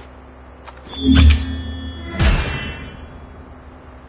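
A victory chime rings out with a booming hit.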